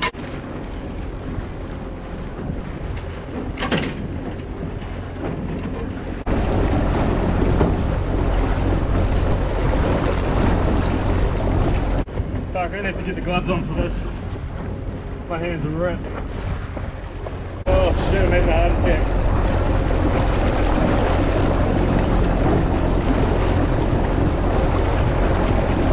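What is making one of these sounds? Water splashes and rushes in the wake of a boat.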